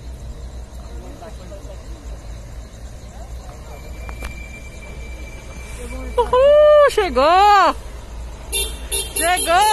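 Vehicles approach on a wet road.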